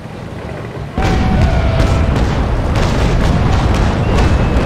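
Cannons fire with heavy, rumbling booms.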